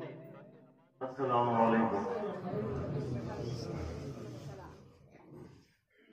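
An elderly man speaks through a microphone.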